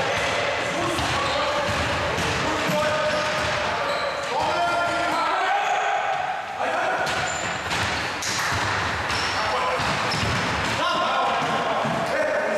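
Young men shout and call out to each other in an echoing hall.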